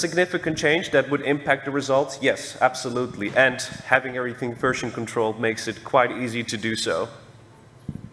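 A young man speaks calmly into a microphone in a large hall.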